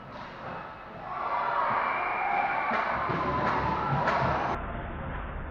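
Spectators cheer in a large echoing rink.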